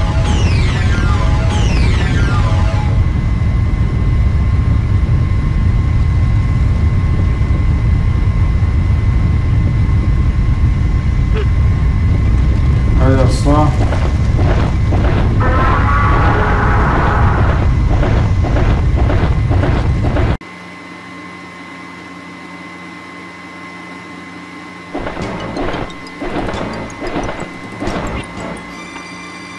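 Loud electronic game sounds rumble and chime.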